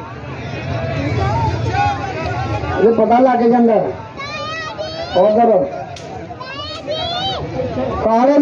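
A large outdoor crowd of men shouts and cheers.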